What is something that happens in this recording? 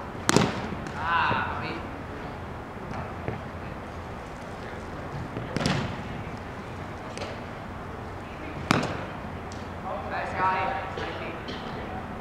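Young men shout and call out to each other across a large echoing hall.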